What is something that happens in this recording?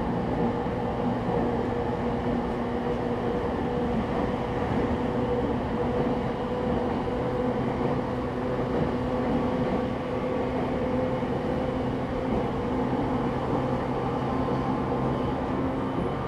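A stopped electric train hums steadily in an echoing station.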